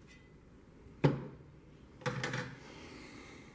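A metal tool box clanks as it is set down on a table.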